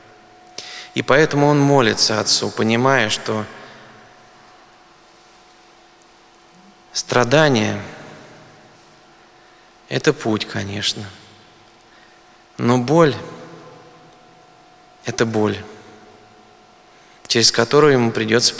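A middle-aged man speaks calmly into a microphone in short phrases with pauses, in a reverberant room.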